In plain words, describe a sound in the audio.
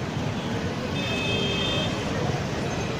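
A vehicle horn honks briefly.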